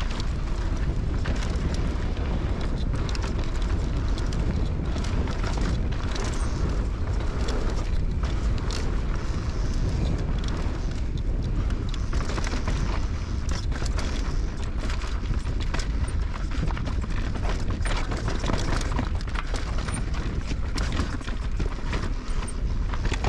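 Wind rushes loudly past a fast-moving rider.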